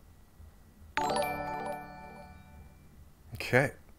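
A short notification chime rings out.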